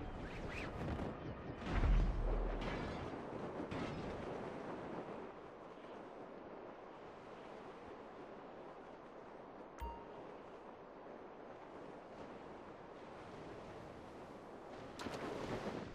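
Wind rushes steadily past during a parachute descent.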